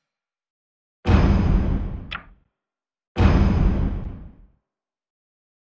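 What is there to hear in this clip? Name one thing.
A deep whooshing sound plays as a menu panel opens and closes.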